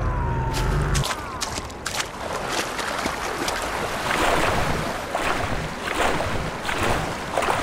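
Water splashes and sloshes with wading steps.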